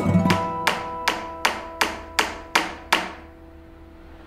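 A hammer taps metal pins into wood with sharp, ringing blows.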